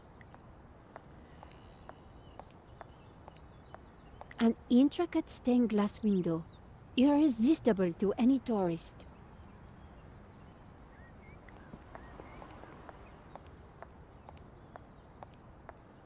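A woman's heels tap on pavement as she walks.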